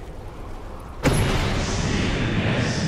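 A magic spell bursts with a sudden loud whoosh.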